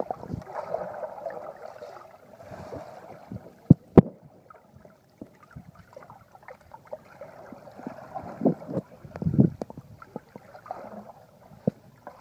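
Bubbles burst and gurgle as swimmers move underwater.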